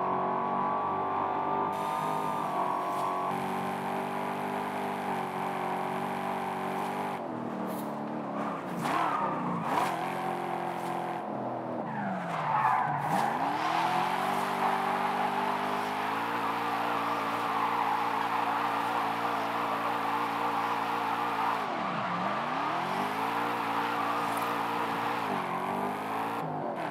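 A car engine roars at high speed, then drops and revs up and down.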